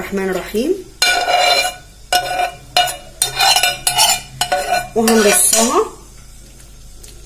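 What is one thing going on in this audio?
A spoon scrapes and clinks against a metal pan.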